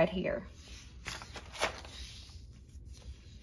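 A paper page flips over with a soft rustle.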